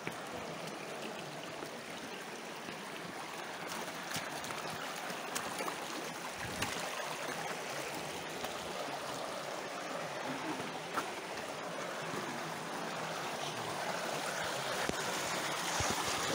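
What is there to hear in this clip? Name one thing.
Shallow water trickles and splashes over rock steadily.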